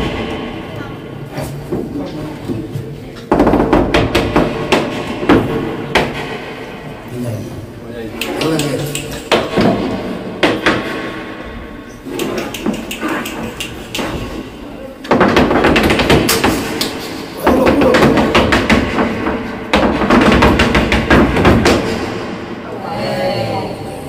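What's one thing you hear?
Acoustic guitars strum a lively flamenco rhythm.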